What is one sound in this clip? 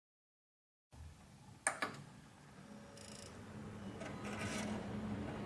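A computer fan whirs steadily.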